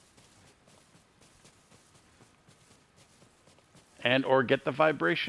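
Quick footsteps patter softly over dry ground.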